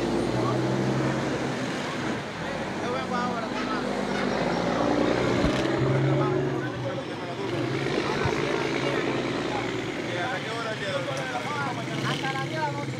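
A crowd of men talks over one another outdoors.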